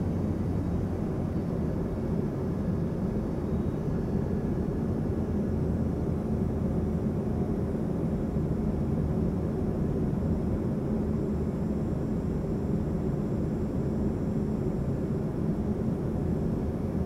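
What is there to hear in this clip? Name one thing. A jet engine drones with a steady, low roar from inside an aircraft cabin.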